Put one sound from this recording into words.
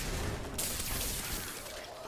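A crackling lightning bolt zaps.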